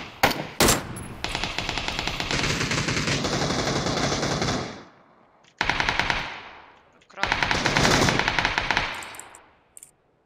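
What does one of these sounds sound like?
Rapid gunfire rattles in long bursts.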